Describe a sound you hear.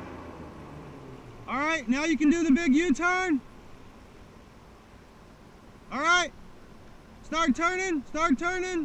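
Water laps gently against the shore.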